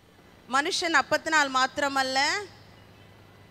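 A middle-aged woman speaks loudly and with feeling into a microphone.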